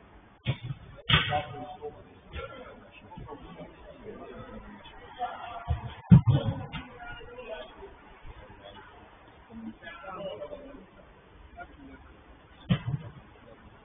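A football thuds as it is kicked, echoing in a large hall.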